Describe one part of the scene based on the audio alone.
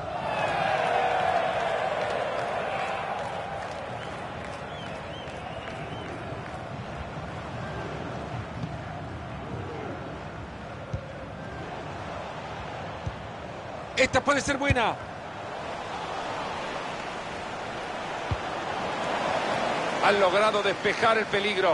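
A large stadium crowd roars and murmurs steadily, swelling at times.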